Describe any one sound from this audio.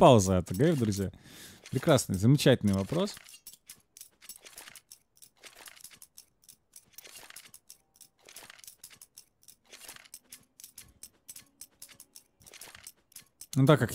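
A knife swishes and clicks as it is flipped in a hand.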